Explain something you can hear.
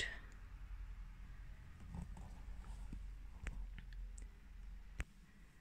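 Fingers brush and tap lightly against a soft toy.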